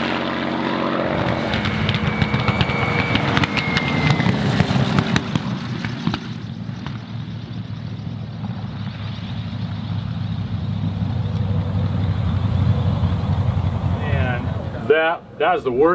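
A propeller plane engine roars and rumbles as it races along the ground.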